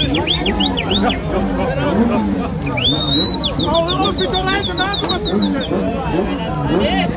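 A crowd of men and women talk and call out nearby outdoors.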